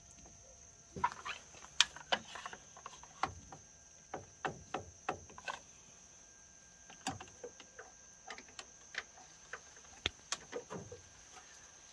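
Plastic parts click and knock as a filter housing is handled.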